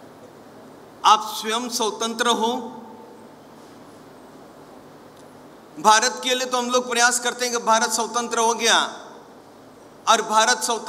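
An elderly man speaks calmly and thoughtfully, pausing between phrases.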